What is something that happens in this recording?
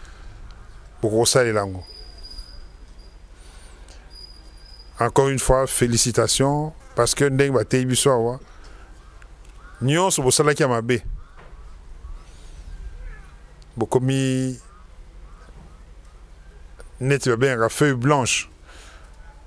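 A middle-aged man speaks slowly and solemnly into a microphone, heard through a loudspeaker, in short phrases with pauses.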